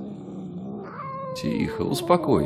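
A cat meows.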